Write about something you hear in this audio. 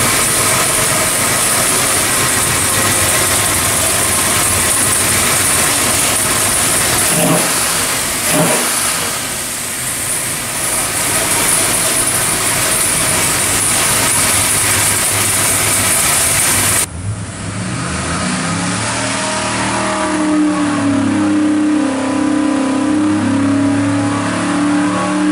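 A powerful engine roars loudly close by.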